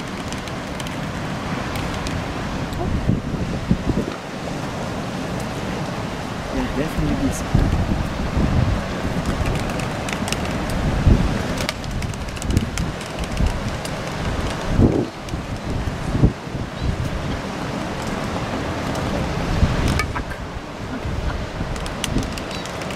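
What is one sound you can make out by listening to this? An albatross gives low moaning calls.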